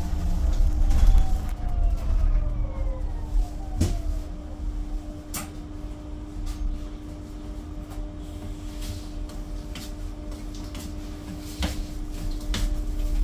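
The bus rattles and creaks as it rolls along.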